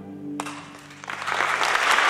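An orchestra plays a final chord in a large hall.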